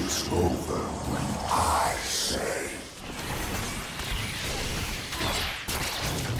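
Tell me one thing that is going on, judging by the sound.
Game spell blasts and hits crackle and whoosh in quick bursts.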